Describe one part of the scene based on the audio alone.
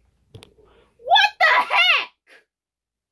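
A young woman speaks loudly and excitedly close by.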